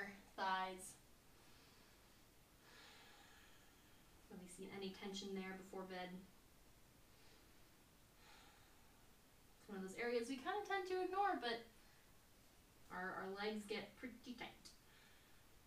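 A young woman speaks calmly and close by, in short phrases with pauses.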